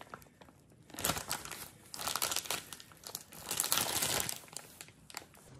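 A plastic bag crinkles and rustles in a hand.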